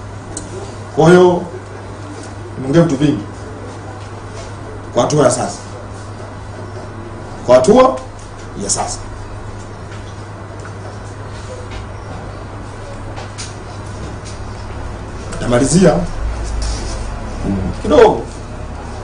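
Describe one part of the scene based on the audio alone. A man speaks in short bursts into microphones, with long pauses between.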